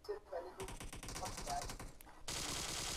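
An automatic rifle fires in rapid bursts.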